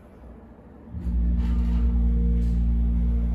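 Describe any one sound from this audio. An elevator hums loudly as it moves.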